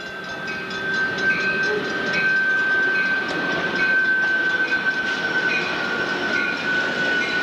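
A railroad crossing bell rings steadily and rapidly.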